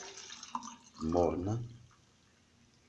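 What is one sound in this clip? Liquid pours into a plastic cup.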